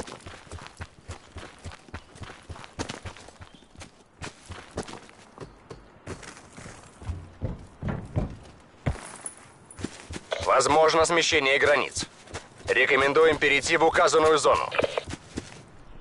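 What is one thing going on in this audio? Quick footsteps thud on dirt and grass.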